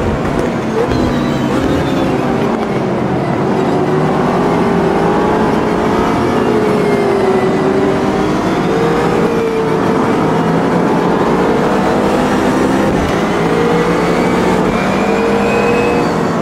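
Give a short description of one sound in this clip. A racing car engine roars steadily, its pitch rising and falling as it shifts gears.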